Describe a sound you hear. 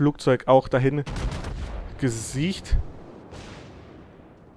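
Heavy naval guns fire with deep booms.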